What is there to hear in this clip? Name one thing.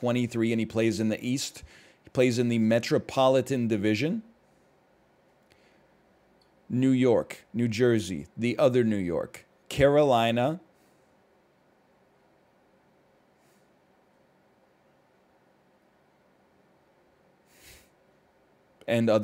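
A man speaks calmly into a headset microphone, in bursts with pauses.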